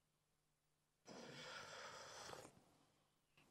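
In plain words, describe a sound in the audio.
A man sips from a cup.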